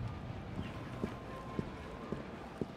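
Footsteps tap lightly on stone.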